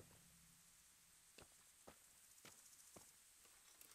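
A horse's hooves step on a forest track.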